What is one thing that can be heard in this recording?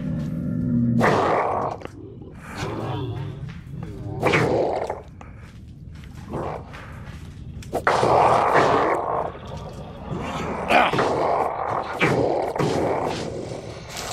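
A zombie snarls and growls loudly, again and again.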